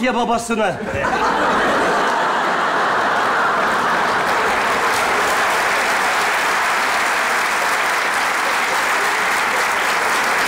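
A large audience laughs and applauds loudly.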